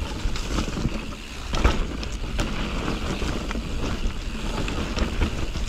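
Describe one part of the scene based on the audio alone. Bicycle tyres roll and crunch over a dry dirt trail covered in leaves.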